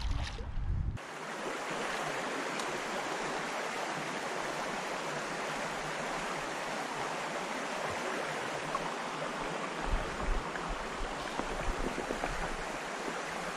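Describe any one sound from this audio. A shallow creek trickles steadily over stones.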